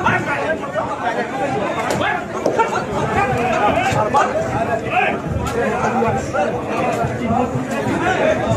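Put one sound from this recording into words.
Blows and shoves thud as men fight.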